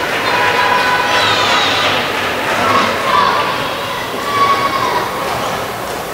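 Sports shoes squeak on a court floor in a large echoing hall.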